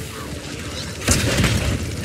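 A fiery explosion crackles and roars.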